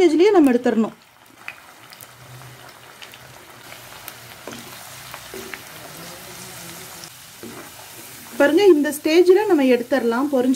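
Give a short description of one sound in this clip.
Oil sizzles and bubbles steadily as food fries in a pan.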